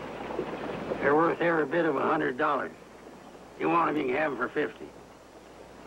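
An elderly man speaks calmly and slowly, close by.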